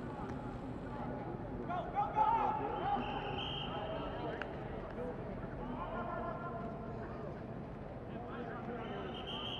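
Several men and women call out and talk across an open field outdoors.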